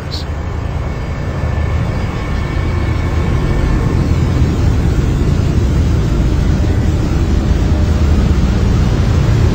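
Rough waves churn and splash.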